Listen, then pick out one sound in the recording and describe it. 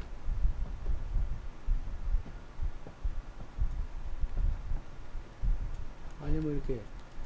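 Heavy footsteps thud slowly on a wooden floor.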